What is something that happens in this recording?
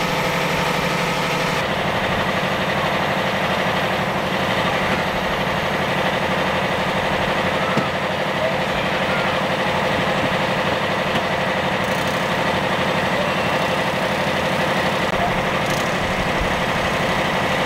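A fire engine idles with a steady, loud drone.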